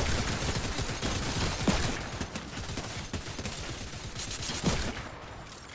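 A video game pistol fires single shots.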